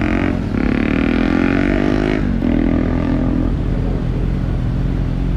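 A motorbike engine idles with a low, steady rumble close by.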